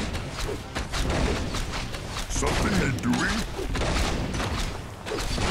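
Swords clash and strike in a fast battle.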